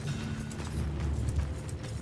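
A campfire crackles nearby.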